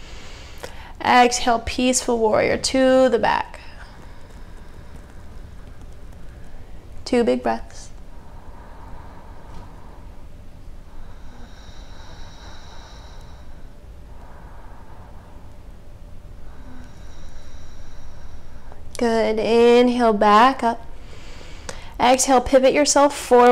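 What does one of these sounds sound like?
A young woman speaks calmly and clearly, close by, in short phrases with long pauses.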